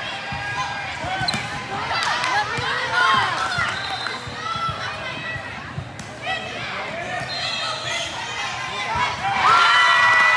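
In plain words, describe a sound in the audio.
Shoes squeak sharply on a gym floor.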